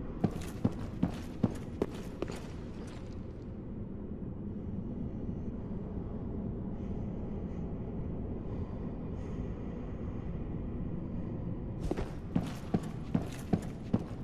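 Armoured footsteps clank quickly on a stone floor in a large echoing hall.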